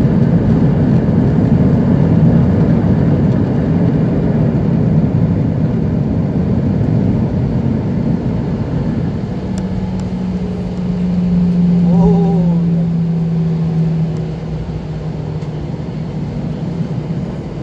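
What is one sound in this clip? Airliner wheels rumble over the taxiway.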